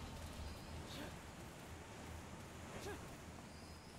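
Footsteps patter quickly as a figure runs.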